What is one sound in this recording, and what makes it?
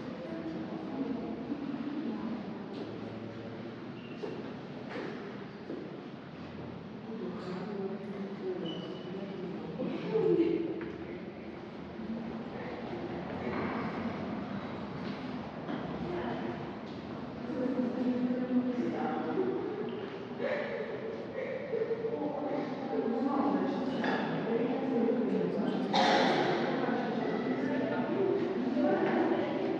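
Men and women talk quietly nearby in an echoing room.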